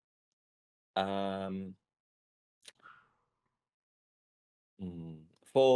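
A man speaks calmly into a close microphone on an online call.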